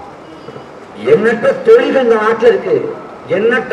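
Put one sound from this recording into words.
A young man speaks loudly and with animation through a microphone and loudspeaker, outdoors.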